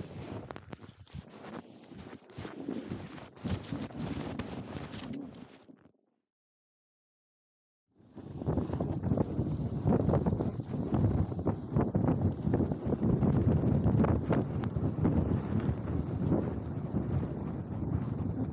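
Wind rushes loudly against a microphone outdoors.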